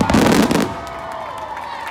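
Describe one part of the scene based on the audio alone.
Fireworks boom and crackle loudly outdoors.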